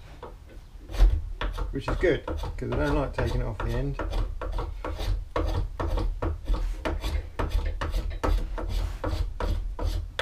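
A hand tool clicks and scrapes rapidly against wood.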